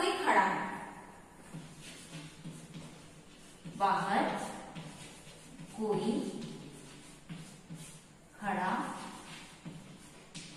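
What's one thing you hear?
A woman speaks slowly and clearly in a room with some echo, in short phrases with pauses.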